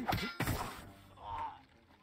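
A sword slashes and strikes with a sharp metallic hit.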